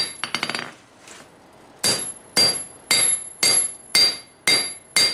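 A hammer strikes hot metal on an anvil in steady, ringing blows.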